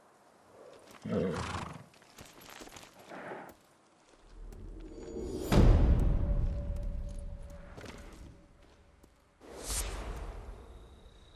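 A horse snorts and shifts its weight.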